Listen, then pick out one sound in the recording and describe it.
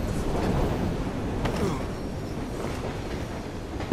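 Boots scrape and thump as a man climbs a brick wall.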